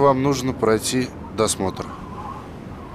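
A man speaks calmly and firmly close by.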